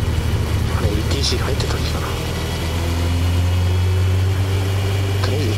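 A car engine hums steadily from inside the vehicle as it drives.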